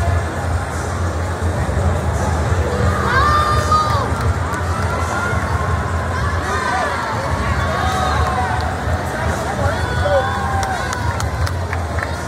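Swimmers splash and churn the water in a large echoing pool.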